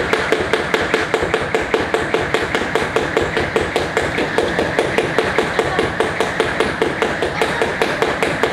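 A person's feet thud softly on a mat.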